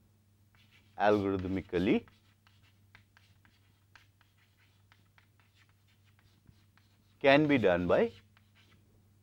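A man speaks briefly and calmly, close by.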